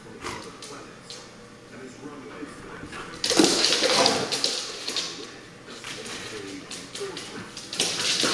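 Dog paws click and scramble on a hard floor.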